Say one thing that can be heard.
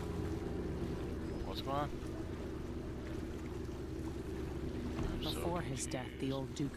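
Water splashes against a moving boat.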